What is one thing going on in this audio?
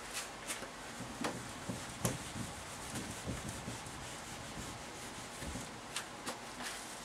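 An eraser squeaks and rubs across a whiteboard.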